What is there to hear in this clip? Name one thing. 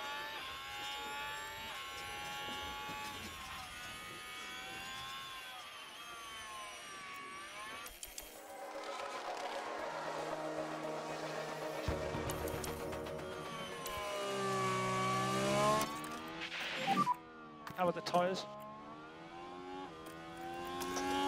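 A racing car engine whines and revs up and down.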